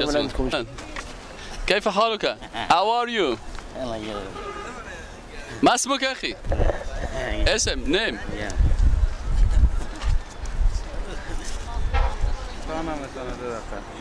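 A man laughs and talks cheerfully close by.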